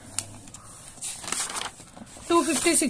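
Paper pages rustle as a page is turned.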